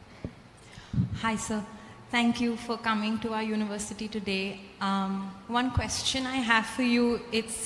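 A young woman speaks into a microphone over loudspeakers in a large hall.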